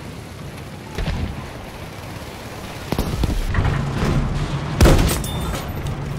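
Explosions boom loudly close by.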